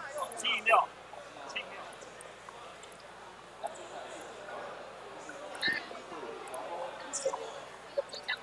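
A young man talks quietly into a headset microphone.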